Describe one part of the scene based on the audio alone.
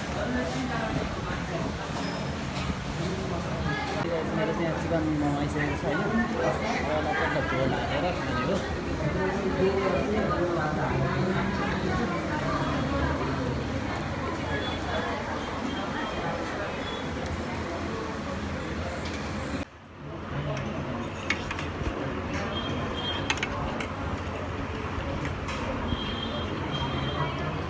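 A crowd of people chatter in a busy, noisy room.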